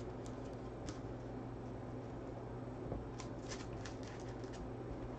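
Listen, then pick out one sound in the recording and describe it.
Hands shuffle and flick through stiff trading cards.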